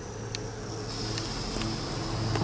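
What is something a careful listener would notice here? A gas torch lights and hisses steadily.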